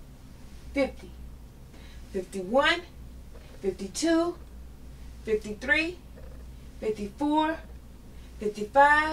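A woman sings short rising phrases close by.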